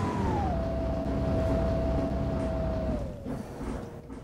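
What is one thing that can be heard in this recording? A bus engine hums and winds down as the bus slows.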